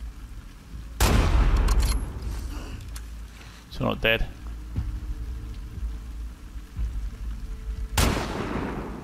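A rifle fires loud single shots that echo away.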